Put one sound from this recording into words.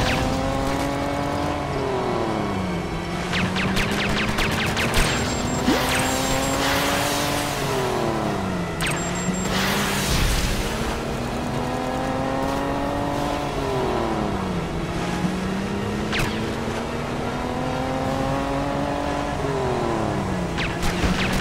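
A small motorboat engine buzzes steadily.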